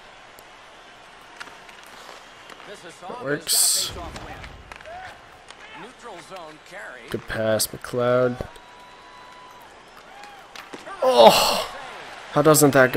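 Hockey sticks click sharply against a puck on ice.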